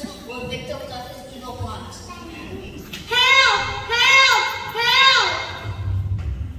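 A young man speaks with animation through a microphone and loudspeakers in a large hall.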